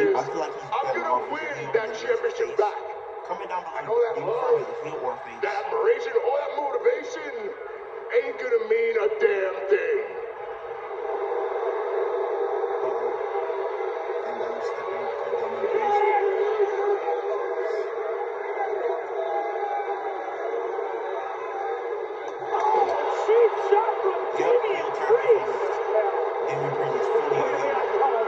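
A young man sings with feeling close to the microphone.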